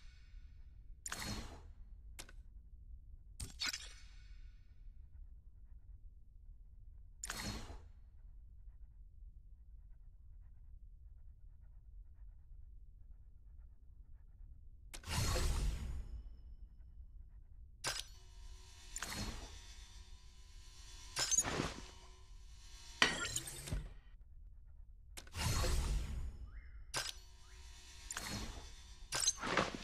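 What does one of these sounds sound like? Short game menu chimes and swishes sound as items are picked and crafted.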